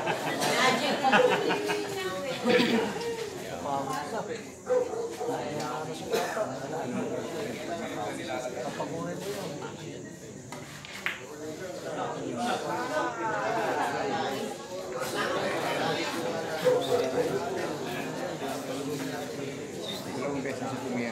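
A crowd of men chatters loudly nearby.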